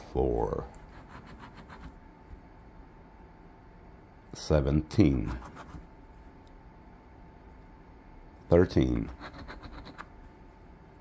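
A coin scratches briskly across a paper lottery ticket.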